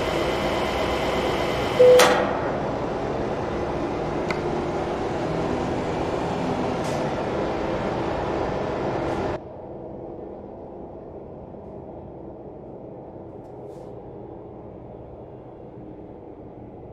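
A truck engine idles steadily, louder outside and muffled once inside the cab.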